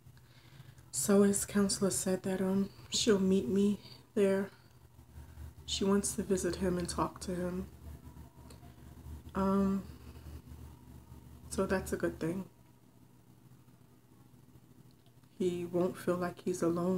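A woman speaks calmly and close up, heard through a phone microphone.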